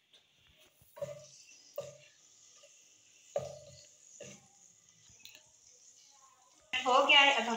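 Spices sizzle in hot oil.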